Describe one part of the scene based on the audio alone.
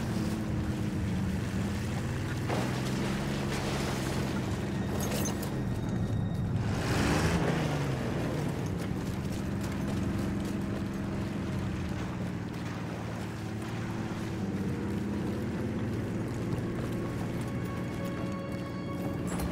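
A tank engine rumbles and clanks nearby.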